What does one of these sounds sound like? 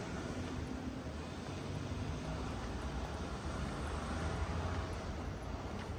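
A steady low city rumble fills the open street outdoors.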